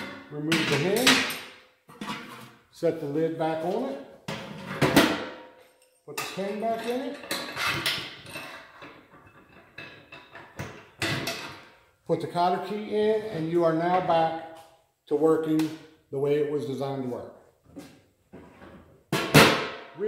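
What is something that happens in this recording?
A metal lid clanks against a metal pot.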